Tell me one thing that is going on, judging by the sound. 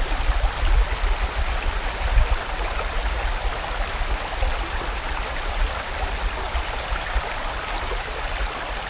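A fast stream rushes and splashes over rocks.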